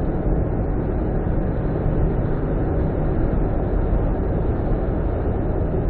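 A truck roars past close by.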